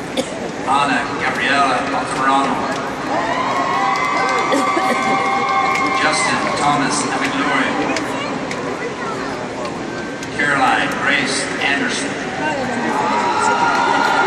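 A man speaks over a loudspeaker in a large echoing hall.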